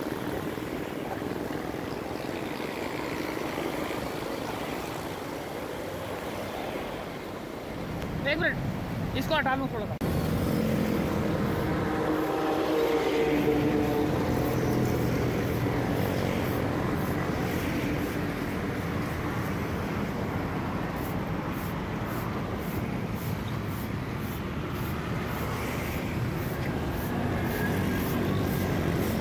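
Traffic hums steadily along a busy road outdoors.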